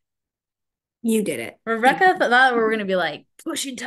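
A middle-aged woman speaks cheerfully through an online call.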